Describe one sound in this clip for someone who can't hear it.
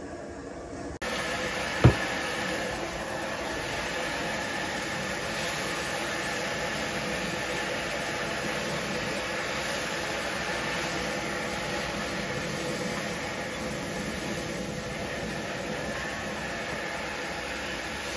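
Food sizzles loudly in a hot wok.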